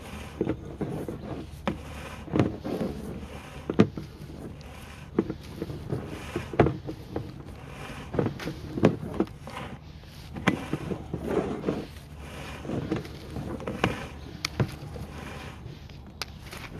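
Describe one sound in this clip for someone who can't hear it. A pipe inspection crawler knocks and bumps as it rolls through a hollow pipe.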